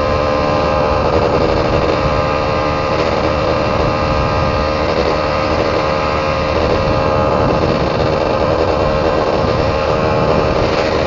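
A scooter engine hums steadily up close.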